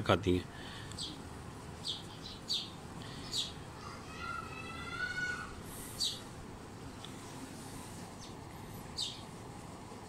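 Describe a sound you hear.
Small birds chirp outdoors.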